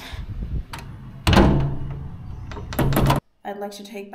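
A metal door handle rattles and clicks.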